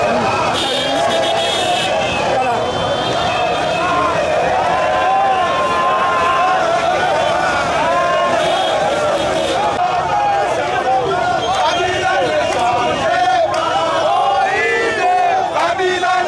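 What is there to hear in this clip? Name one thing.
A large crowd of men chants and sings loudly outdoors.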